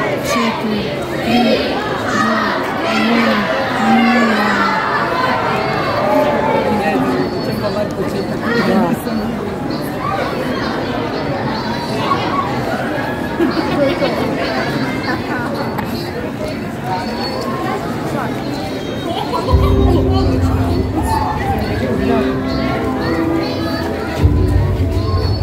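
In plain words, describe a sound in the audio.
Music plays loudly over loudspeakers outdoors.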